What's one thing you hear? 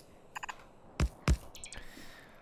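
A short electronic click sounds.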